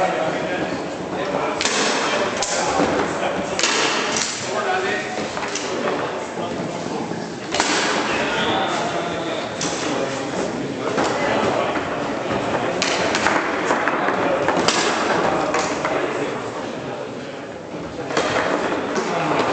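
Foosball rods clatter and a ball knocks sharply against the table walls.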